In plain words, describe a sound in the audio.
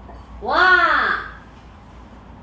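A woman exclaims nearby in a rising and falling voice.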